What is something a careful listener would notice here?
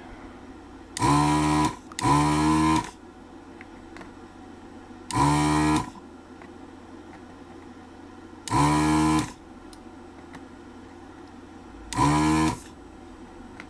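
A desoldering gun's pump buzzes in short bursts.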